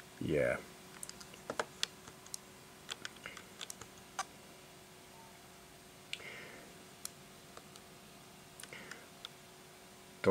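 Small buttons click under a thumb.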